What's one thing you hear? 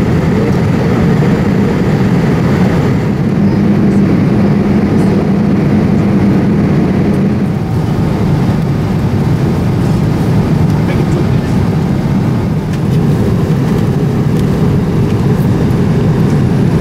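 Jet engines roar steadily inside an airliner cabin.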